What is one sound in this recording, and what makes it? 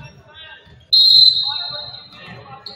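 A referee's whistle blows sharply in an echoing gym.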